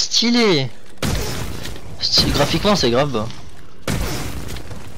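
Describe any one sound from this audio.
An energy weapon fires with a crackling, fiery blast.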